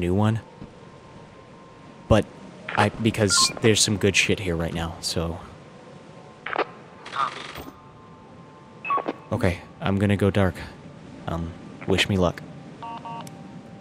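A young man talks with animation over a crackling walkie-talkie.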